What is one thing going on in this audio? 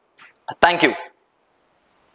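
A young man speaks briefly and clearly into a microphone nearby.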